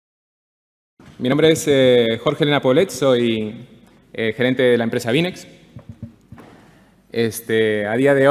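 A young man speaks calmly through a microphone in a large hall.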